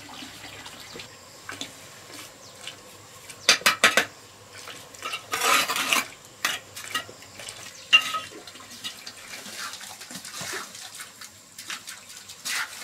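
A trowel taps bricks into place with sharp clinks.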